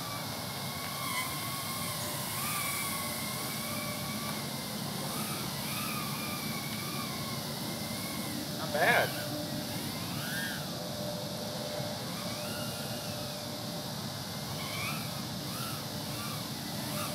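A light breeze blows outdoors.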